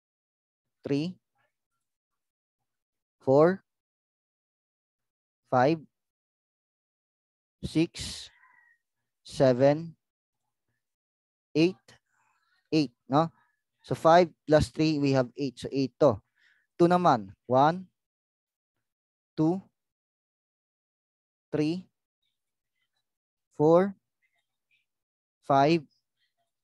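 A man counts aloud calmly into a microphone, in short bursts with pauses.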